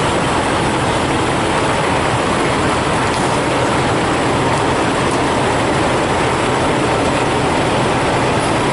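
A truck's diesel engine idles nearby with a steady rumble.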